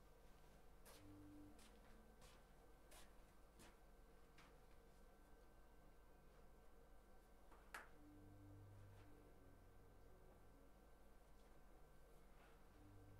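A saxophone plays short, soft notes with pauses between them.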